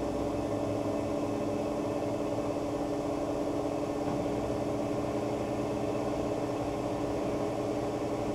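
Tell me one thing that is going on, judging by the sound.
A washing machine drum spins with a steady hum.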